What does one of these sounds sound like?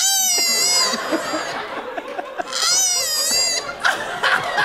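A koala bellows with loud, wavering, snorting calls.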